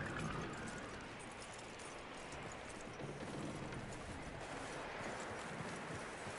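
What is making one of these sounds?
Horse hooves clop slowly on the ground.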